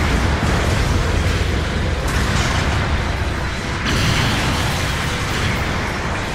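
A giant robot's heavy footsteps thud and clank on metal.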